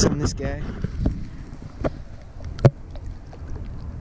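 A fish splashes as it is let go into the water.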